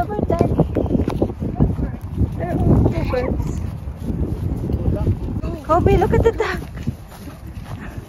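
A young girl talks excitedly close by.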